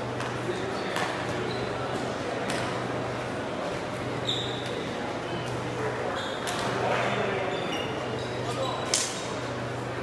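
Shuttlecocks are struck with rackets in sharp pops.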